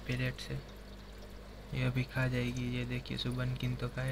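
Air bubbles gurgle softly in water.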